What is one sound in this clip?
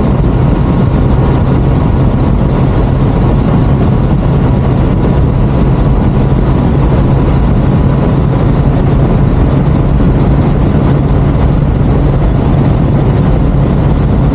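Wind roars loudly past the rider.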